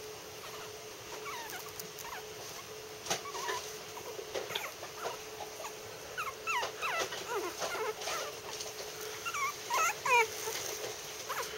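A small animal gives short, high squeaks close by.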